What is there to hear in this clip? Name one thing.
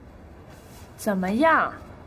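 A woman asks a short question, close by.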